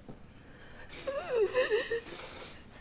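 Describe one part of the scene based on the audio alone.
A woman laughs and speaks brightly close by.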